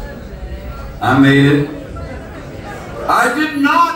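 An older man sings loudly into a microphone.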